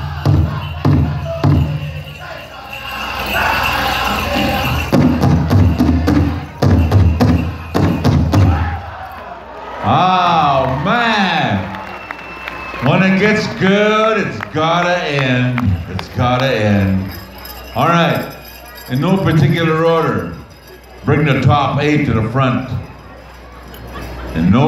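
Bells on dancers' legs jingle with each step.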